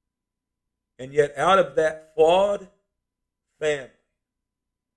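An older man speaks calmly and close to the microphone.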